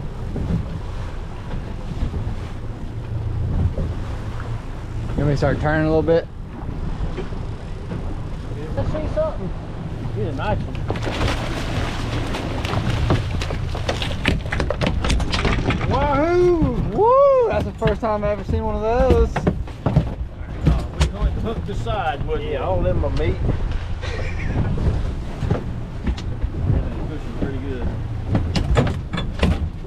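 Wind rumbles steadily outdoors on open water.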